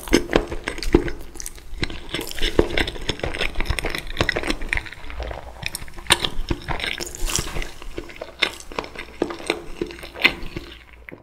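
Someone chews crunchy food loudly, very close to a microphone.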